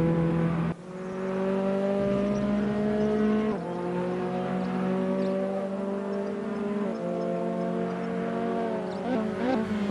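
A race car engine roars at high revs, shifting up through the gears.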